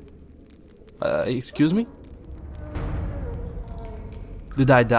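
A second man answers in a deep, gravelly voice.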